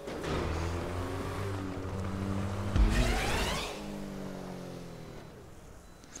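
A car engine revs and hums.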